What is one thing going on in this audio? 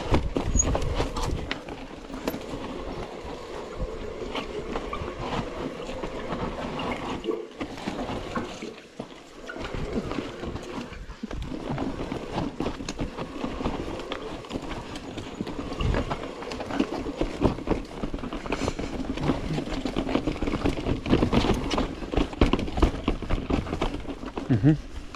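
Bike tyres crunch and rattle over rocky dirt close by.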